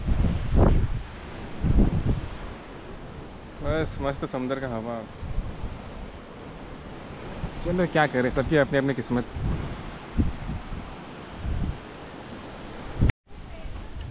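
Wind blows across a microphone.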